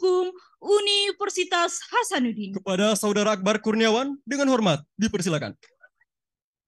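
A woman speaks over a loudspeaker.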